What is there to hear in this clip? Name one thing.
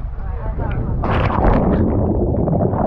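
A man splashes into the water.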